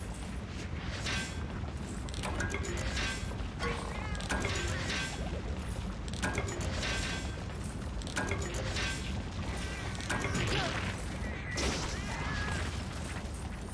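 Metal blades clash and strike in quick bursts.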